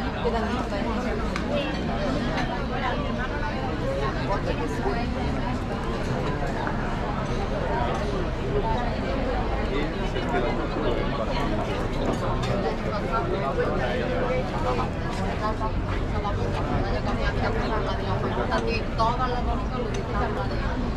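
Many people chatter nearby outdoors.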